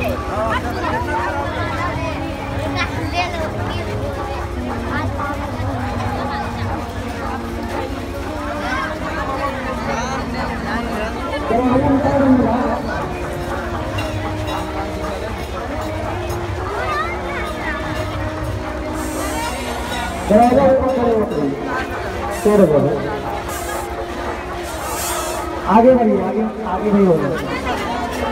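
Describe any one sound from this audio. A large crowd chatters all around outdoors.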